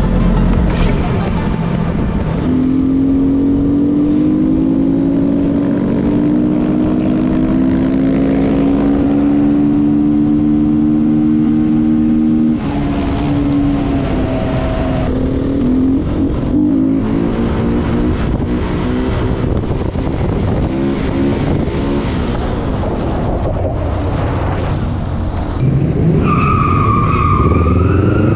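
A motorcycle engine drones steadily and rises in pitch as it speeds up.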